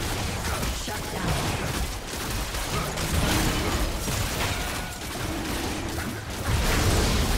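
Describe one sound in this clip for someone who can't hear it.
Magic spells whoosh and crackle in a fast video game battle.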